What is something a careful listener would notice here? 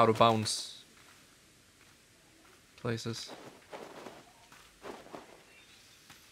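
A man speaks briefly and casually, close to a microphone.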